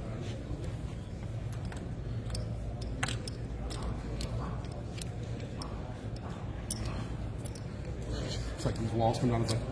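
Dice rattle in cupped hands.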